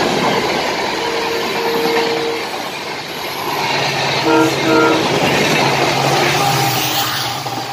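A diesel locomotive sounds its horn in short blasts.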